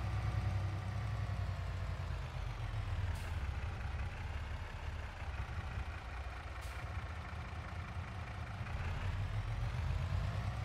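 A truck engine rumbles steadily, its pitch dipping and then rising again as it slows and speeds up.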